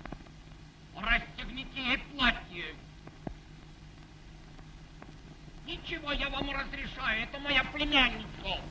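A boy speaks with animation, close by.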